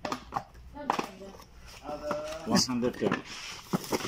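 A cardboard box flap rustles and scrapes as it is handled.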